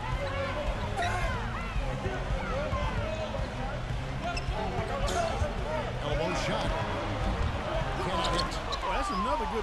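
A large crowd murmurs in an echoing arena.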